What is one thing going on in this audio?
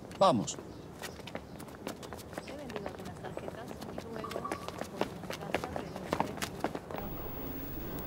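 Footsteps scuff on pavement outdoors.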